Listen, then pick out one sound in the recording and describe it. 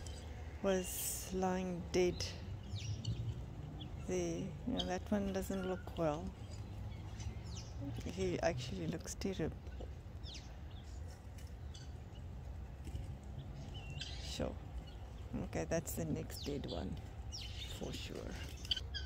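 Guineafowl cackle and chatter nearby.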